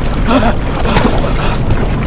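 Water splashes loudly as a person falls into it.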